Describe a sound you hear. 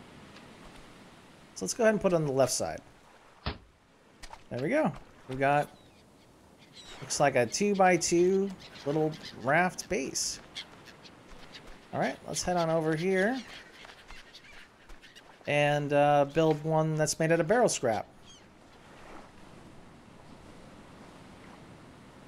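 Waves wash gently onto a sandy shore.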